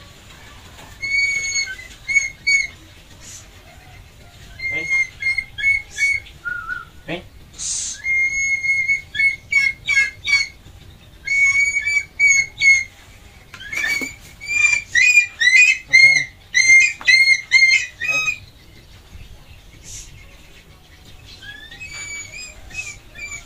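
A bird of prey gives shrill, repeated whistling calls close by.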